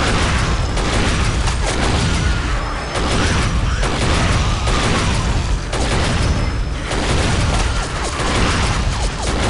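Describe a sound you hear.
Electric bolts crackle and buzz.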